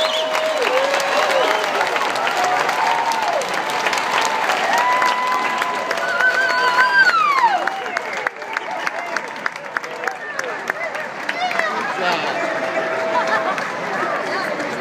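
A large crowd cheers and whoops outdoors.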